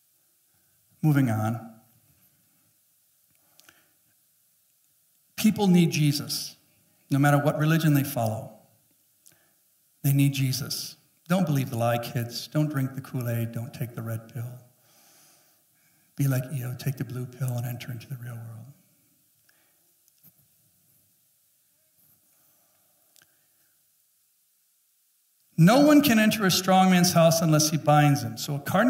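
A middle-aged man speaks to an audience through a microphone, in bursts with long pauses.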